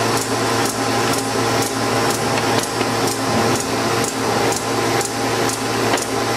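Sheets of paper swish and tick rhythmically as they feed through a machine.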